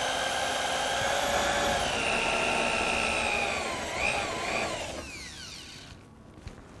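An electric drill whines at high speed and then winds down.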